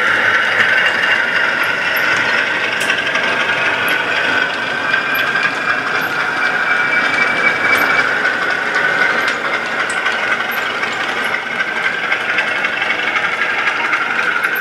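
A model train rumbles and whirs steadily along its track.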